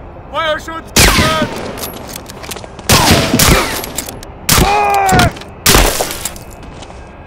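A pistol fires several loud shots that echo in a small room.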